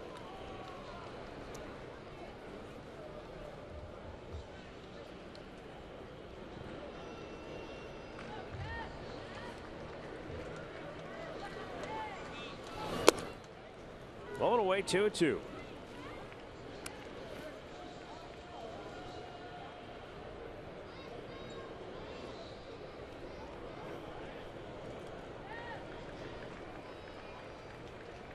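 A large crowd murmurs in an open stadium.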